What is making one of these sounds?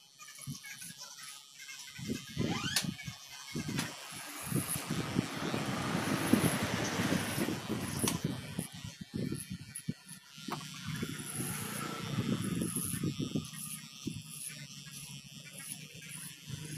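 Electric hair clippers buzz while cutting hair.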